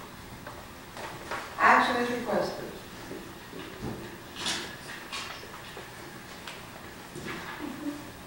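A man speaks calmly through a microphone in a large room with some echo.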